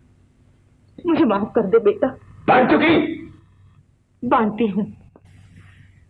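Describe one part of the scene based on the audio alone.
A woman speaks with feeling, close by.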